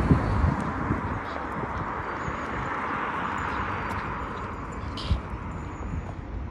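A car drives past nearby.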